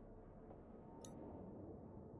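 A game menu gives a short click.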